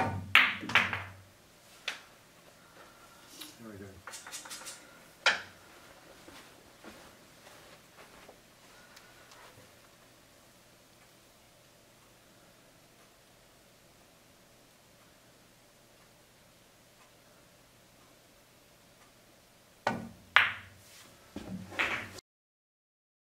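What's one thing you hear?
Billiard balls clack against each other and thud off the cushions.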